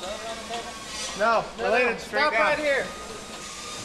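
Several men shout together while lifting a heavy load.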